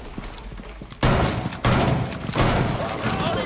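A rifle fires a few loud shots.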